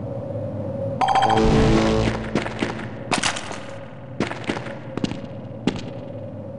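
Gunshots fire in quick bursts, ringing out in a large echoing hall.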